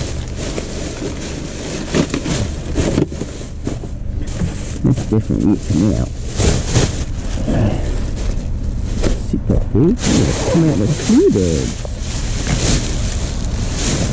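A plastic rubbish bag rustles and crinkles as it is handled.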